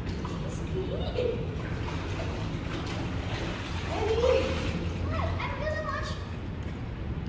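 Young women talk and call out in an echoing indoor space.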